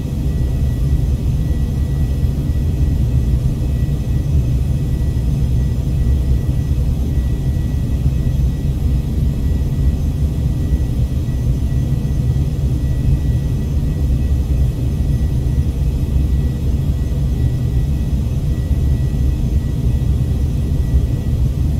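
A jet engine roars steadily with a low, deep rumble.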